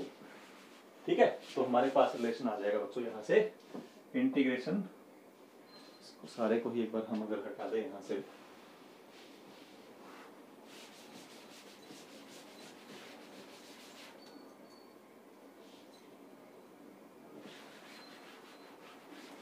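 A cloth rubs and wipes across a chalkboard.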